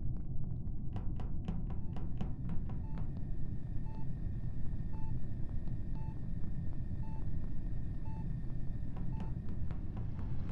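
Quick footsteps patter on a metal floor.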